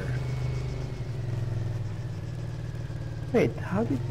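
A quad bike engine runs.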